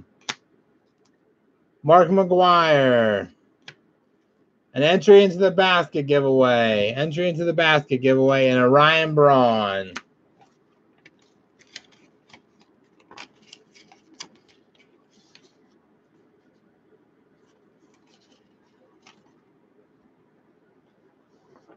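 Plastic card holders click and tap against each other as they are handled.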